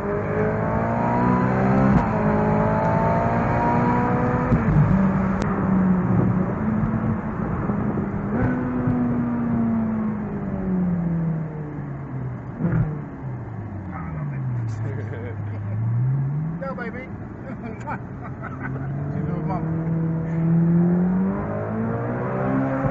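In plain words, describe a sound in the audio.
A car engine hums and revs up and down through the gears.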